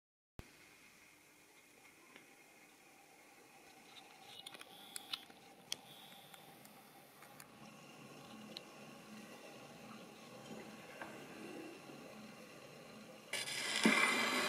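A spinning record hisses and crackles softly on a wind-up gramophone.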